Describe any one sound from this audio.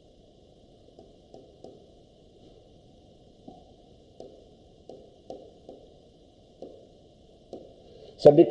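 A pen taps softly on a board.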